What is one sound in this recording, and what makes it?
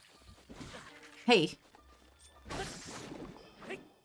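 A sword strikes a creature with a wet splat.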